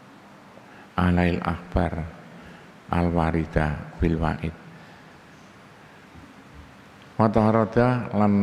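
An elderly man reads out calmly into a microphone, in short bursts with pauses.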